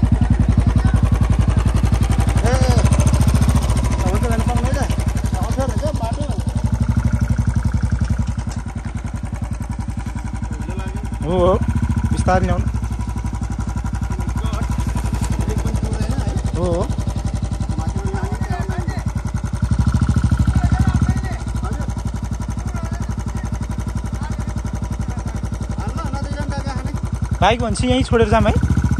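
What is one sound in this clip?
A motorcycle engine thumps steadily at low revs.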